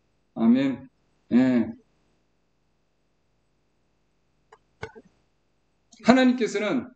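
A middle-aged man speaks calmly through a call microphone, in short phrases with pauses.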